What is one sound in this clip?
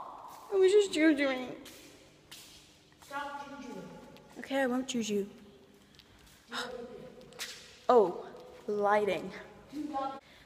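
A young woman talks with animation close to the microphone, in a hollow echoing space.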